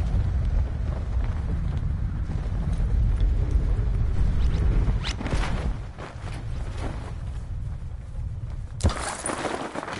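Wind rushes loudly during a fast skydive.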